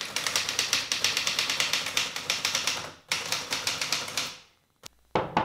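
A typewriter clatters with rapid keystrokes.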